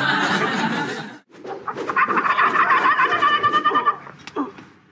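Blows land and feet scuffle during a fistfight.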